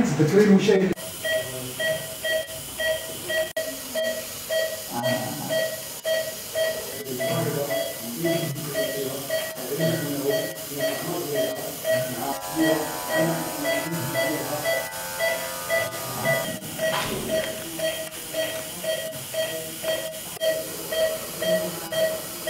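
A patient monitor beeps quickly with each heartbeat.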